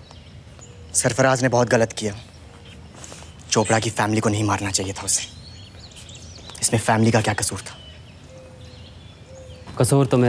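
A young man speaks loudly and with feeling, close by.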